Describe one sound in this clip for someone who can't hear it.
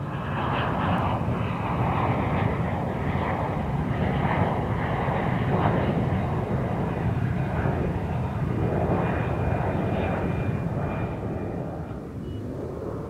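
A jet airliner roars loudly as it climbs away overhead.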